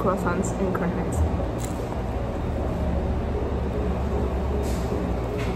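A young woman speaks casually close by.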